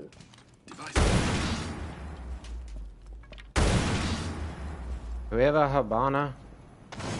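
Loud blasts boom and roar.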